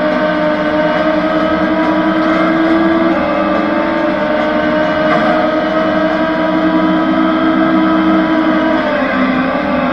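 A racing car engine roars steadily at high speed, its pitch shifting as gears change.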